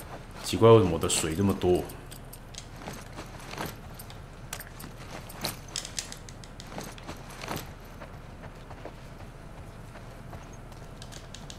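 Footsteps shuffle softly across a hard floor.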